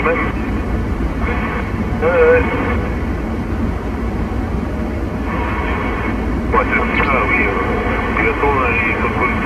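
Voices come through a CB radio loudspeaker over AM static.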